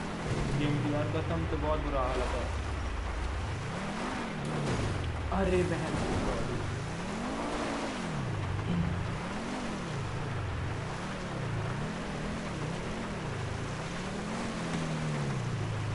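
A sports car engine revs up and down repeatedly.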